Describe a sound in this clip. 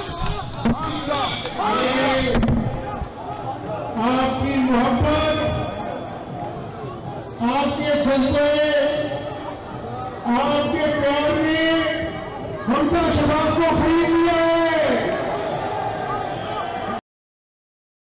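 A crowd chants loudly in reply.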